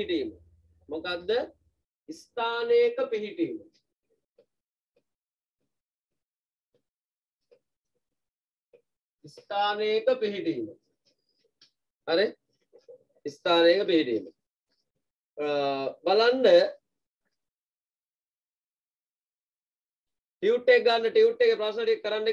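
A man speaks calmly and clearly close by, in pauses.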